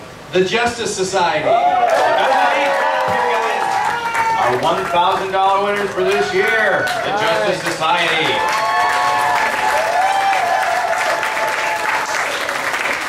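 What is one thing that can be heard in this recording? A crowd cheers and shouts.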